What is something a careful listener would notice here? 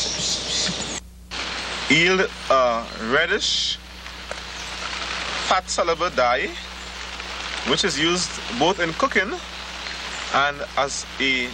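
Leaves rustle.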